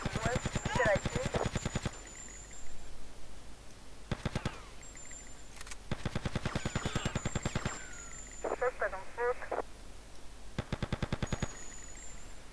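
Rapid bursts of gunfire rattle in quick succession.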